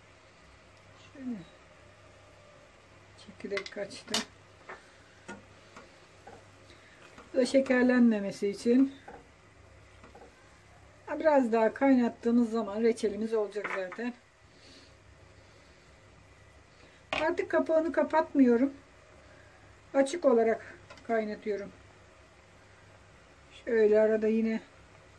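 A metal spoon clinks against the side of a pot.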